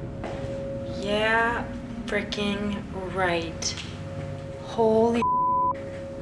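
A young woman speaks in a frightened, breathy voice close by.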